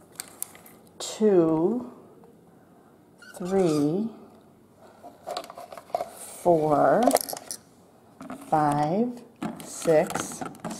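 Hard plastic clicks and rattles as it is handled on a stone surface.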